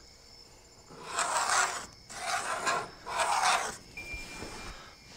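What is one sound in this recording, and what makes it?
A tool scrapes across a wooden board in several short strokes.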